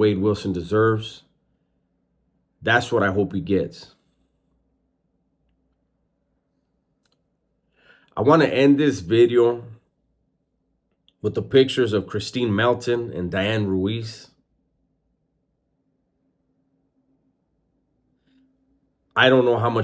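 A man speaks calmly and earnestly into a close microphone, with pauses.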